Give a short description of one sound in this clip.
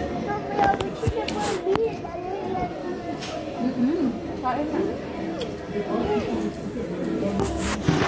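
Several adults talk and chatter nearby.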